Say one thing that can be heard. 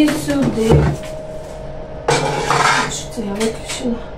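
An oven door creaks open.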